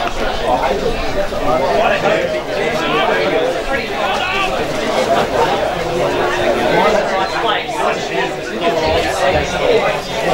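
Several men talk and call out nearby in the open air.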